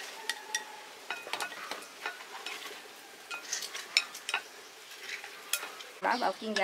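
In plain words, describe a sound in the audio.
Chopsticks clink against a glass bowl while stirring.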